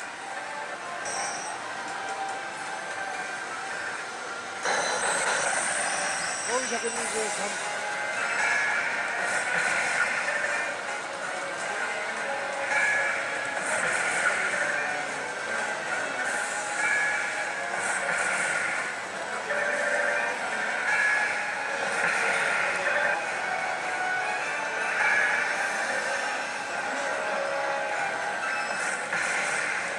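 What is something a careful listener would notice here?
A slot machine plays loud electronic music and jingles.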